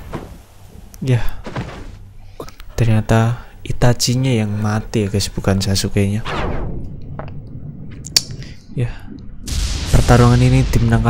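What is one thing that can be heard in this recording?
A young man talks close to a microphone.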